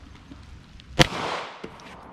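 A pistol fires a sharp, loud shot outdoors.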